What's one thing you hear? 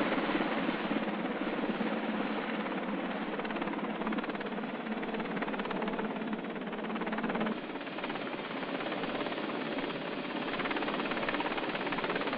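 A helicopter's rotor thuds rapidly and steadily as it flies.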